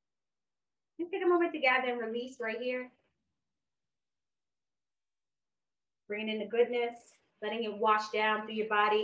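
A young woman speaks calmly and slowly, close to a microphone.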